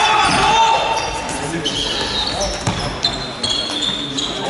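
Children's sneakers squeak sharply on a hall floor.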